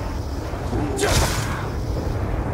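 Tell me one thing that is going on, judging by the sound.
A knife slashes through the air.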